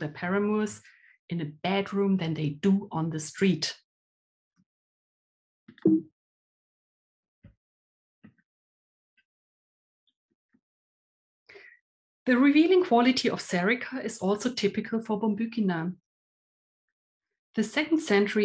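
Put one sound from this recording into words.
A woman speaks calmly and clearly into a microphone, as if presenting a lecture.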